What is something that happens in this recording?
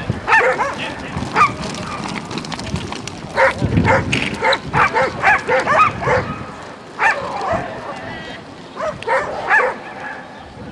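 A man shouts commands to a dog outdoors.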